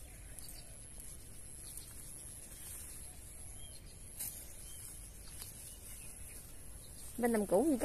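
A plastic bag rustles in a hand.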